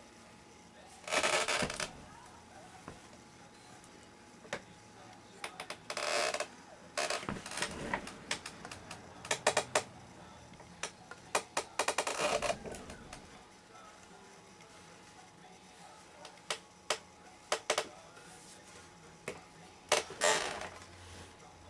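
Hands knock and rub against a wooden string instrument close by.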